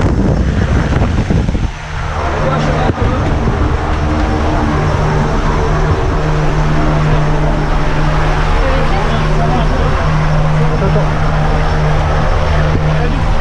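A small plane's engine drones steadily up close.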